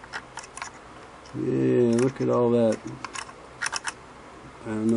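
A small metal tool taps and clicks against metal parts.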